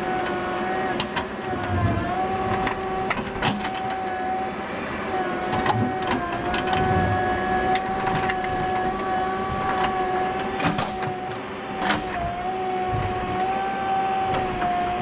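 A diesel engine drones steadily close by.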